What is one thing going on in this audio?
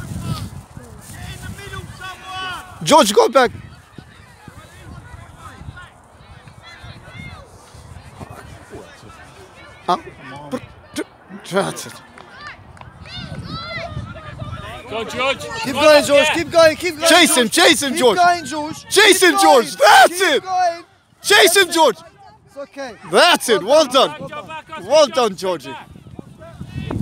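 Men shout encouragement loudly from the sideline, outdoors.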